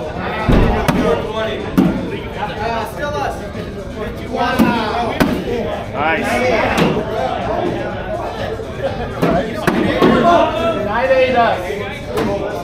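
Bean bags thud onto a wooden board.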